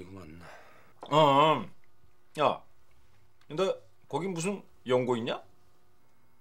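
A middle-aged man speaks with feeling, close by.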